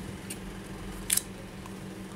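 A small plastic part clicks as it is pried loose.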